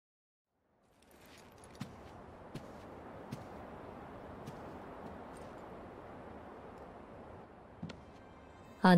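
Footsteps creak softly on wooden floorboards.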